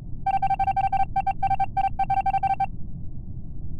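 Short electronic beeps tick rapidly, one after another.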